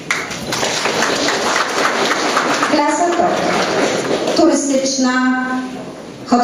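A middle-aged woman speaks steadily into a microphone, heard through loudspeakers in a large echoing hall.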